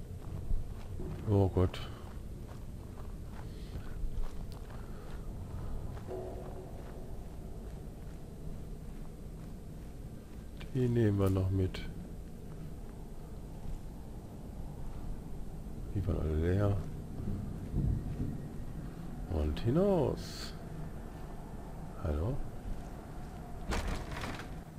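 Footsteps crunch softly on a dirt floor.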